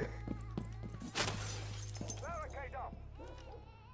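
Wood splinters and cracks as a barricade is smashed.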